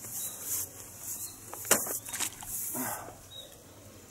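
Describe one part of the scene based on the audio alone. Water splashes softly as a small weight drops into it.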